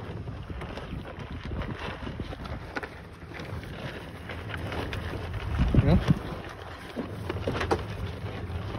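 Cattle crop and chew grass close by.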